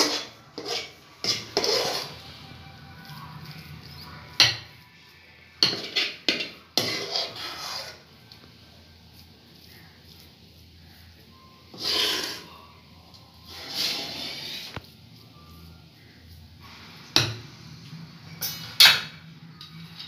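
A metal spoon clinks against a glass bowl.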